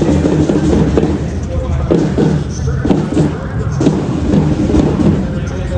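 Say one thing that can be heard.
A crowd of people chatter and call out nearby.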